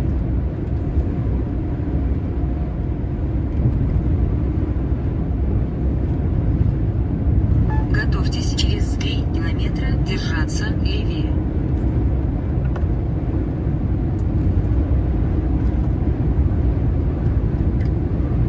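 Wind rushes past a moving vehicle.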